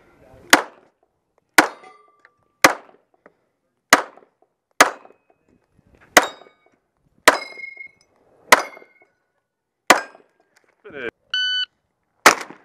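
Loud gunshots crack one after another outdoors, about once a second.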